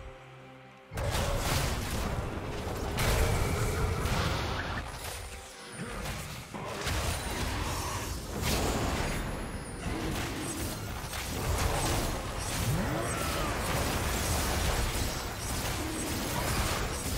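Blows and blasts thud again and again.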